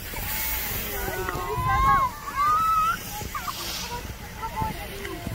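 Skis scrape softly over snow.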